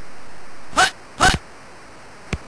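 Short electronic game beeps sound twice.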